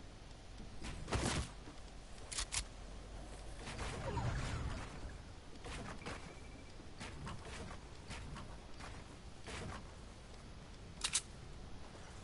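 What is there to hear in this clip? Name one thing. Video game sound effects give sharp clicks and thuds now and then.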